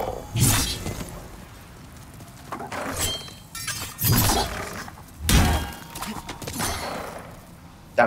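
A sword swings and strikes with sharp clangs.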